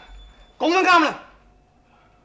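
A man speaks sharply nearby.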